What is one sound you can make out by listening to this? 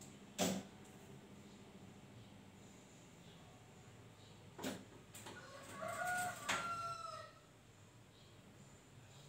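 A sewing machine runs and clatters close by.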